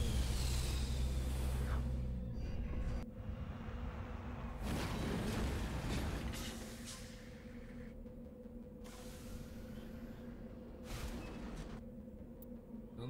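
A heavy vehicle engine rumbles.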